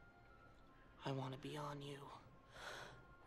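A young woman speaks urgently up close.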